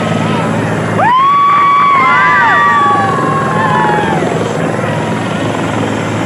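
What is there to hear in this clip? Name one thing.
A crowd of men cheer and shout.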